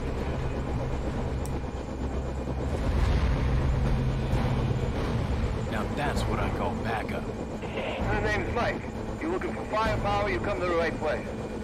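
A helicopter's rotor thumps and drones loudly overhead.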